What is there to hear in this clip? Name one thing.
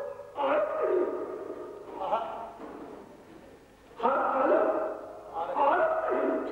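An elderly man speaks slowly and forcefully into a microphone, with a slight echo.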